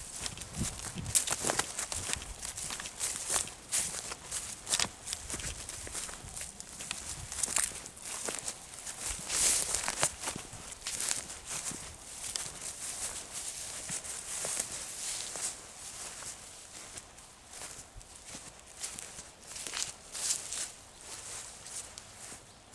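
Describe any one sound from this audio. Footsteps swish and crunch through dry grass close by.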